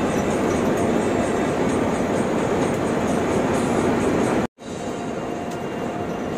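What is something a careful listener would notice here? Tyres roar on a highway.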